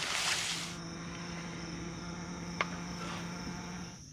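A wooden spatula scrapes across a hot griddle.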